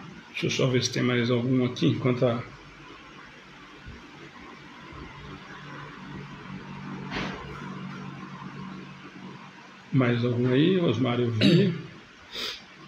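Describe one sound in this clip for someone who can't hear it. A man talks calmly into a nearby microphone, in short bursts.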